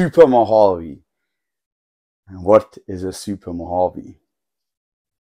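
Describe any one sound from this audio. A man speaks with animation into a clip-on microphone, close by.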